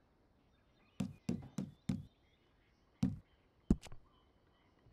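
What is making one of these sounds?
Short clicks tick one after another.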